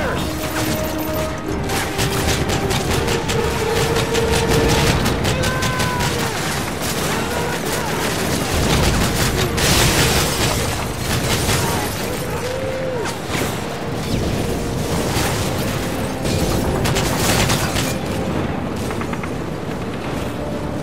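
Rapid rifle gunfire cracks in bursts, close by.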